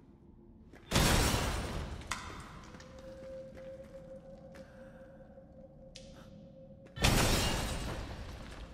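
A pistol fires loud shots that echo and fade.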